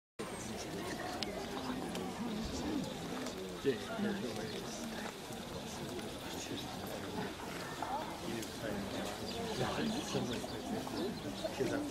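Young children chatter and call out close by, outdoors.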